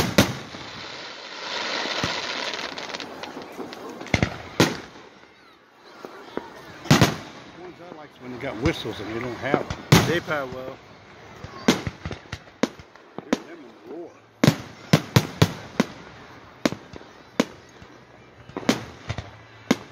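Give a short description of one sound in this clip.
Firework rockets whistle and crackle as they shoot up.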